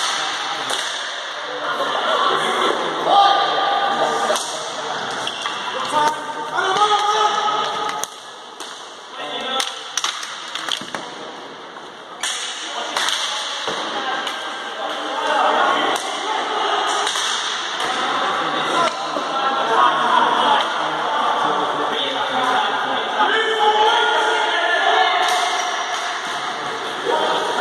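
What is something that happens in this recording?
Players' wheels roll and scrape on the hard floor.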